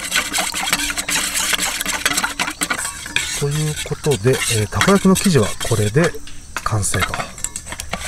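A wire whisk clinks and scrapes against a metal bowl as batter is stirred.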